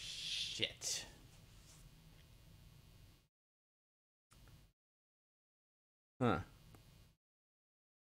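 A man speaks briefly over an online call, in short bursts between silences.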